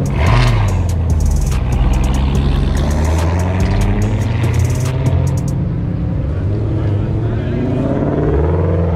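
A sports car engine rumbles loudly close by.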